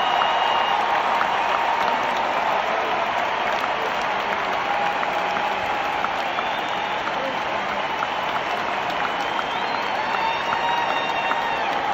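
A large crowd cheers loudly and steadily at a concert.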